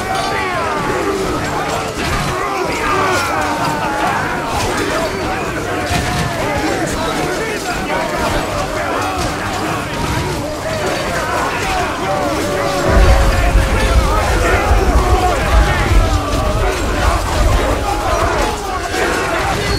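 Swords and shields clash in a large battle.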